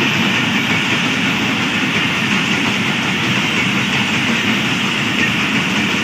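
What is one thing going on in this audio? A passenger train rumbles and clatters steadily past on its rails.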